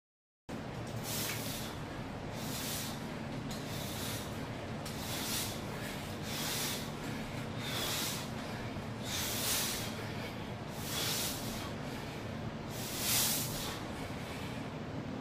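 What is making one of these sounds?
A man exhales sharply and rhythmically.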